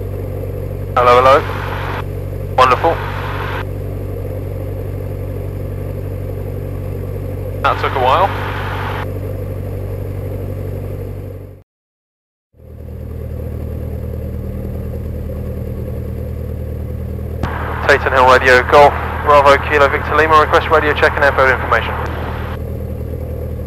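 A young man speaks through a headset radio intercom.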